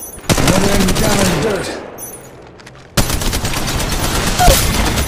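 A gun fires in rapid bursts, loud and close.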